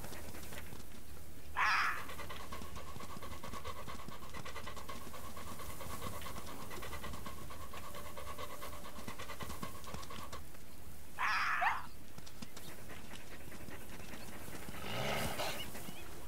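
An animal's paws patter over grass.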